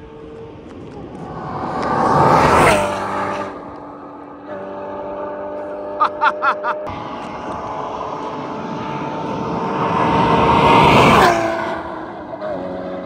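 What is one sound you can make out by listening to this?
A car speeds past with a loud, rising and falling engine roar.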